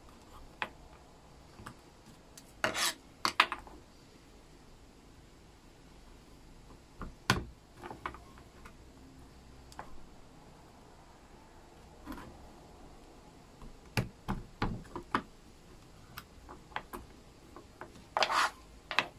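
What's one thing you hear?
A chisel pares a small block of hardwood by hand.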